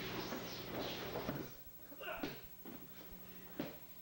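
A body thuds onto the floor mat.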